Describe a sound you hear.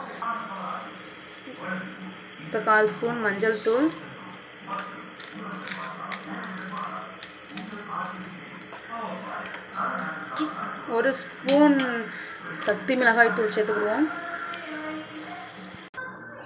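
Food sizzles softly in a pot.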